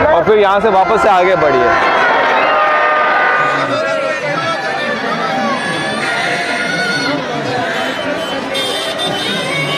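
A crowd chatters and bustles outdoors.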